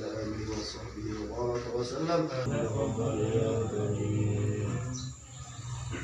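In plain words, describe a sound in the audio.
A man chants a prayer close by.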